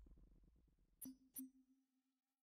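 A short electronic menu tone blips twice.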